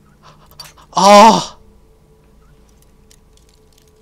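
A metal lock pick snaps.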